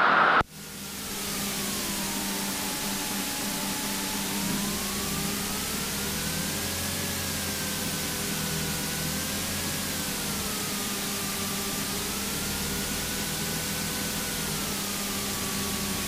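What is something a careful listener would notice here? A small propeller plane's engine drones steadily, its pitch wavering up and down.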